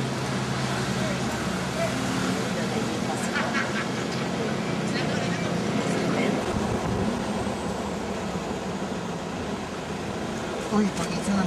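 A car engine hums steadily nearby.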